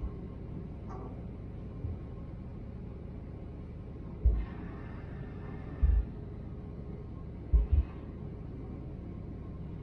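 A ferry's engine hums steadily.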